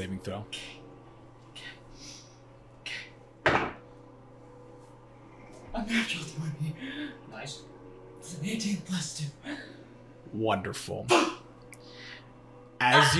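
Several men and women talk and laugh together.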